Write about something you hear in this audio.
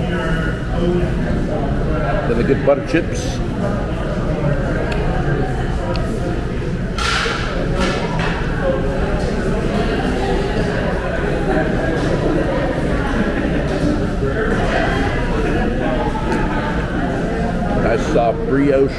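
A room full of people murmurs in the background.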